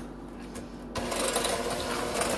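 An electric hand mixer whirs steadily.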